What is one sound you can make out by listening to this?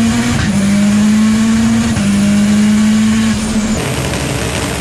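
A race car engine idles loudly from inside the car.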